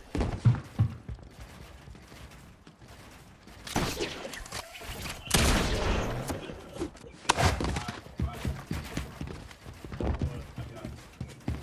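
Footsteps thud on hollow floors.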